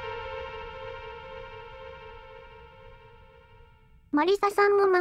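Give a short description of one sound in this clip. A bright electronic chime rings and slowly fades.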